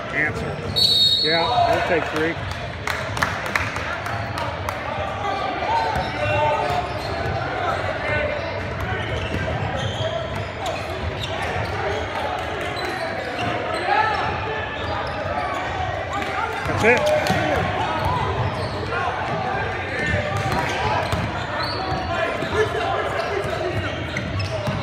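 Many voices of players and spectators chatter and call out in a large echoing gym.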